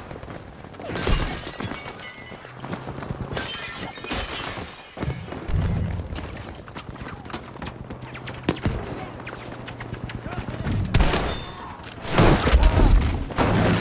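Gunshots crack and boom close by.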